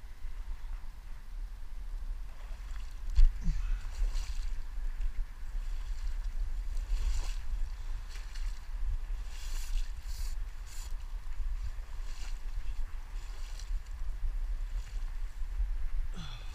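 Footsteps squelch and splash through shallow water and mud.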